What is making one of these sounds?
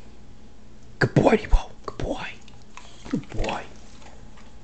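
A dog crunches and chews a treat.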